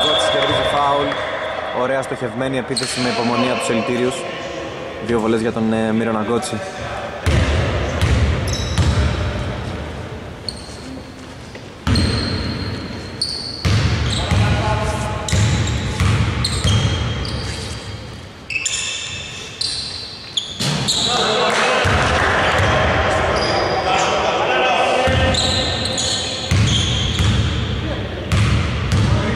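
Sneakers squeak on a polished floor.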